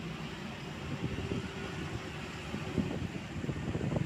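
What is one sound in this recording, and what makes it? A diesel box truck drives past.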